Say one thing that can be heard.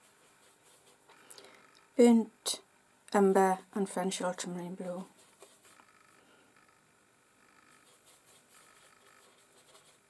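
A brush swirls and dabs wet paint on a palette.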